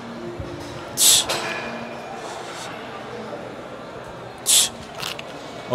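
A young man exhales sharply with effort, close by.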